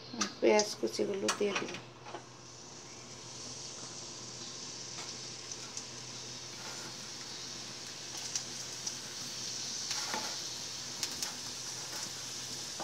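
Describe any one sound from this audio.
Onions sizzle and crackle in hot oil.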